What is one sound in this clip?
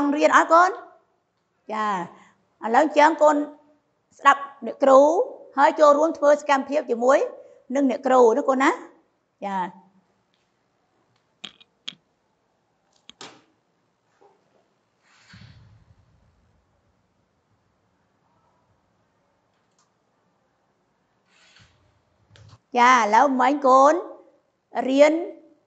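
A woman speaks calmly and clearly into a clip-on microphone, close by.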